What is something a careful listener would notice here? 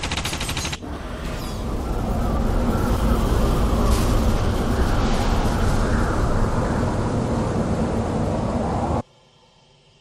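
A heavy machine roars and rumbles loudly, then cuts off abruptly.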